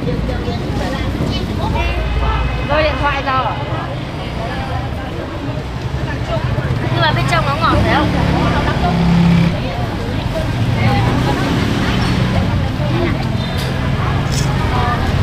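Voices of a crowd chatter in the background outdoors.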